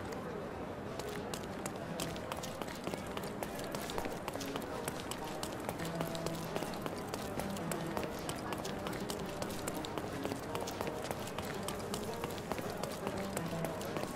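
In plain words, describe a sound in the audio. Quick footsteps run over stone paving.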